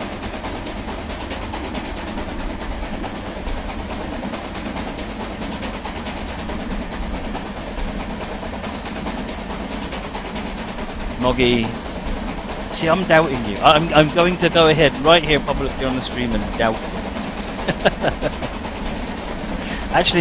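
A steam locomotive chugs steadily.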